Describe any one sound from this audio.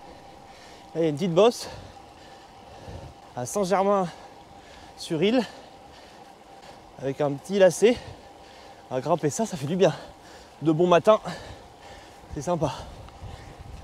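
A young man talks with animation close by, in short bursts.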